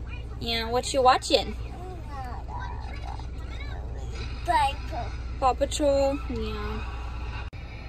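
A young child talks excitedly and squeals close by.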